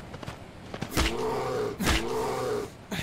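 A spear thuds into a wild boar.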